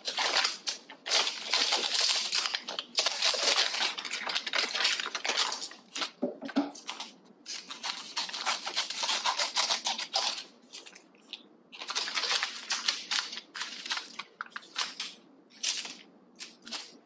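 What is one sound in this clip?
Crinkly plastic snack packets and foil rustle and crackle as hands handle them.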